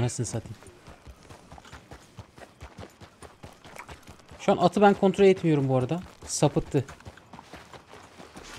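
A horse's hooves thud steadily as it trots.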